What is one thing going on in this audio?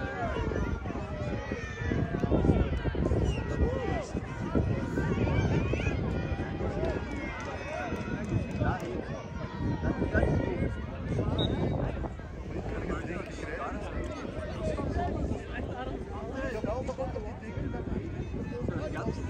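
Many children and adults chatter and shout in the open air, some way off.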